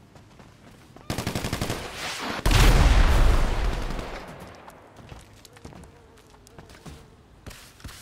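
Footsteps run quickly across gravel.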